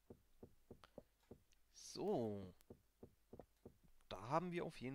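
A pickaxe taps and chips at stone in quick strokes.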